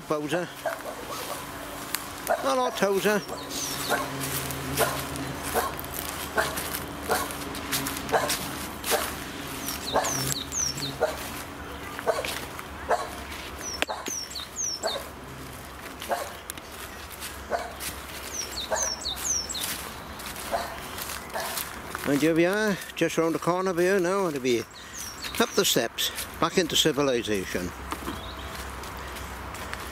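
Footsteps crunch steadily on dry leaves and twigs outdoors.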